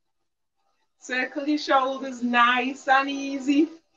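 A woman sings through an online call.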